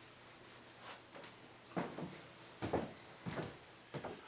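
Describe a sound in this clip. Footsteps thud on a wooden floor as a man walks away.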